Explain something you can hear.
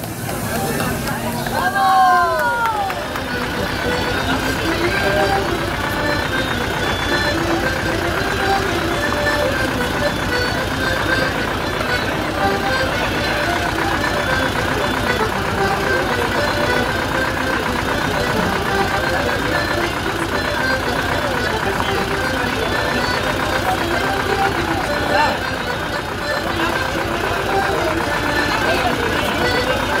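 A crowd chatters in the background.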